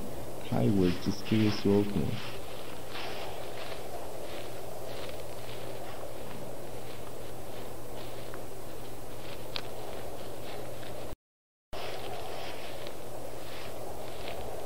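Wind blows steadily across an open field.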